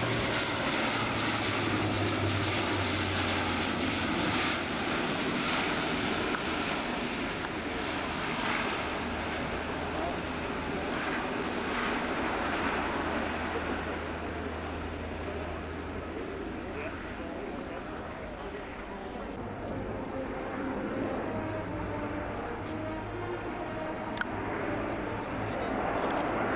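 A propeller aircraft roars loudly overhead, its engine drone swelling and fading as it banks.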